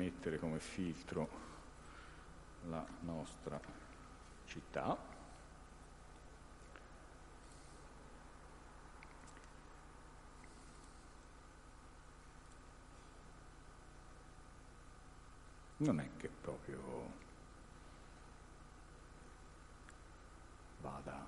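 A man speaks calmly through a microphone, in short bursts with long pauses.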